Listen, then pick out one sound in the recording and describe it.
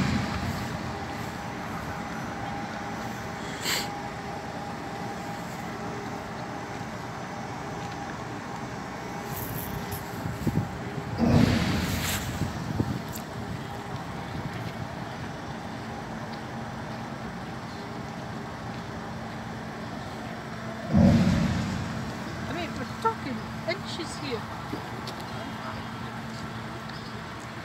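Bridge machinery hums steadily.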